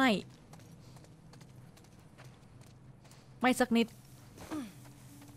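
Footsteps walk steadily over stone and then through grass.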